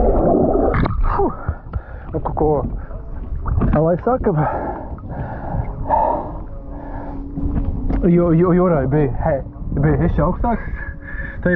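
Water laps and sloshes gently around wooden posts.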